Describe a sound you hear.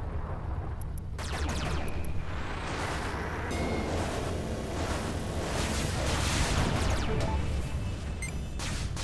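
Laser guns fire in rapid bursts.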